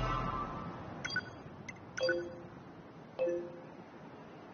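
Short electronic beeps chime a few times.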